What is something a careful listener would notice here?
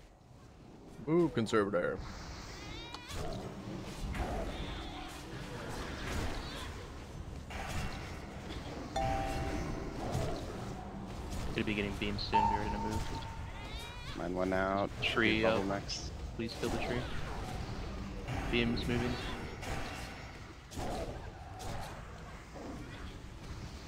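A young man talks into a close microphone with animation.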